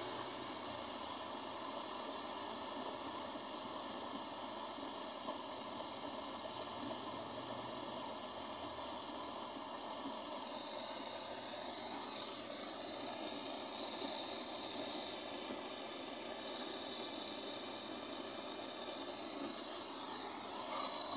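Gas hisses steadily from a canister through a hose.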